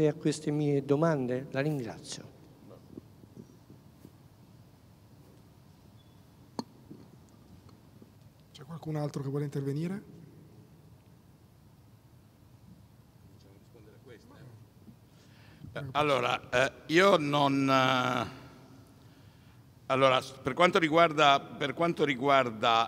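An elderly man speaks calmly into a microphone, in a large hall with some echo.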